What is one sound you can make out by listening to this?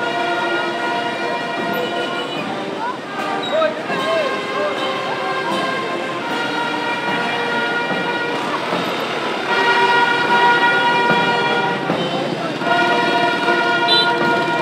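A choir sings along with steady music.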